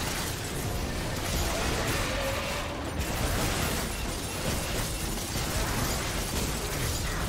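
Magical combat effects crackle and whoosh in a busy fight.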